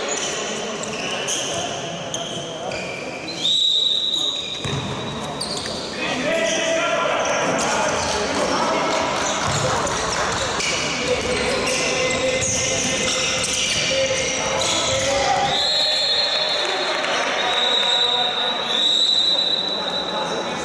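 Sports shoes squeak on an indoor court floor in a large echoing hall.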